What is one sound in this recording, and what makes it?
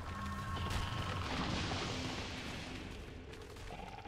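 A burst of fire crackles and hisses.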